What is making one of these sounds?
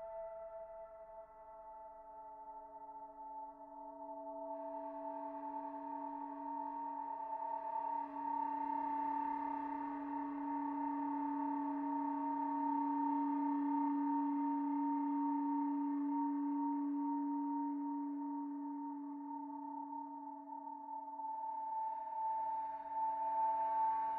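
A synthesizer plays a steady, droning chord that slowly swells with a hissing, noisy texture.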